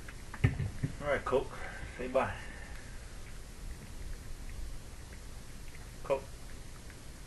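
A small dog whines in short, high yelps close by.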